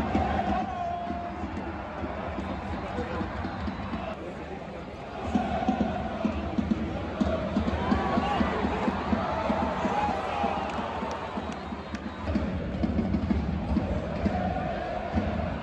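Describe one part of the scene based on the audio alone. A large stadium crowd chants and sings loudly, echoing in a vast open space.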